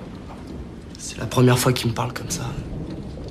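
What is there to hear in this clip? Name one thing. A young man speaks up close, earnestly.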